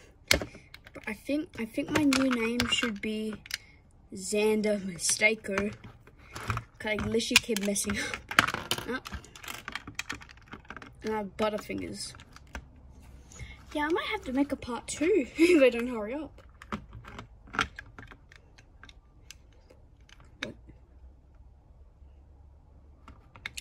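Plastic toy bricks click and snap together close by.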